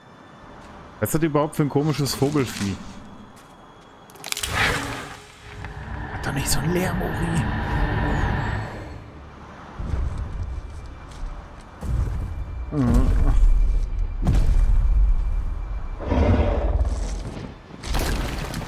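A giant creature growls with a deep, rumbling roar.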